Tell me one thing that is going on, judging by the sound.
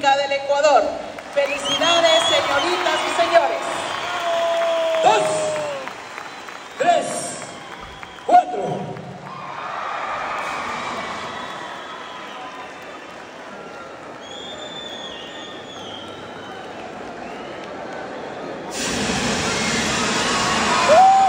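A crowd cheers and whistles in a large echoing hall.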